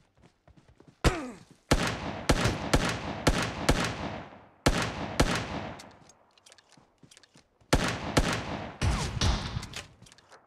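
Gunshots fire in rapid bursts close by.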